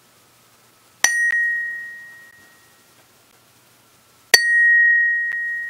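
A hammer strikes a metal bell, which rings out clearly and slowly fades.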